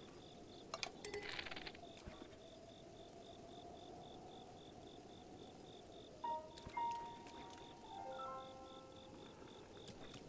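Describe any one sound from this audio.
A bowstring creaks as a bow is drawn and aimed.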